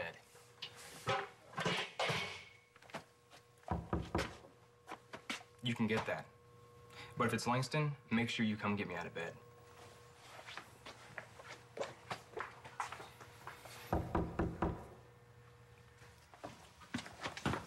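A young man speaks tensely and close by.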